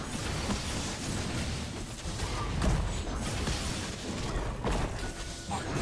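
Spell effects whoosh and crackle during a fight.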